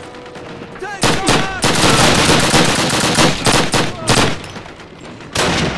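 A submachine gun fires rapid, loud bursts.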